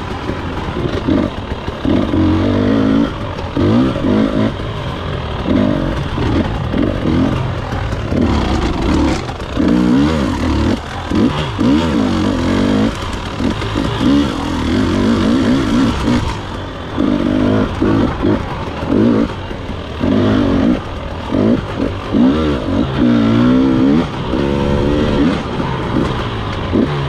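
A dirt bike engine revs up and down, close by.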